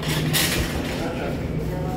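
A glass door swings open with a rattle.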